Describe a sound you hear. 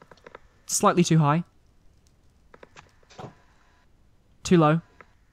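Fire crackles softly.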